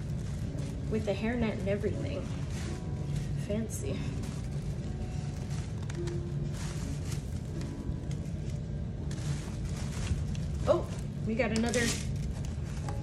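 A woman speaks softly and closely into a microphone.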